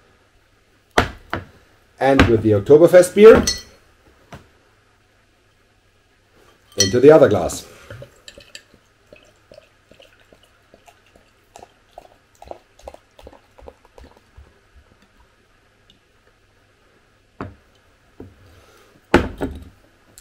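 A glass thumps down on a table.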